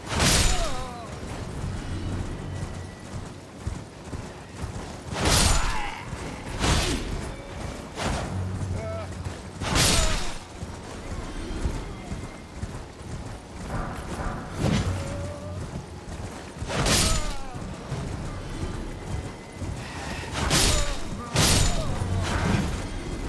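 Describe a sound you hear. Sword blows strike with loud bursts of noise.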